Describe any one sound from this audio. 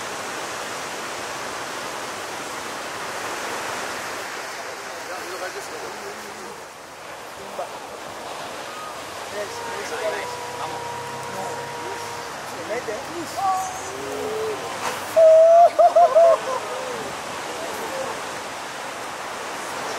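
Large ocean waves crash and roar.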